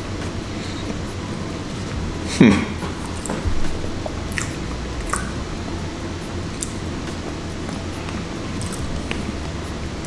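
A man chews food with his mouth closed.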